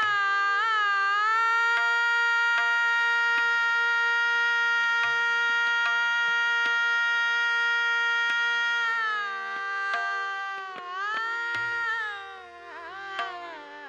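A harmonium plays steady sustained notes.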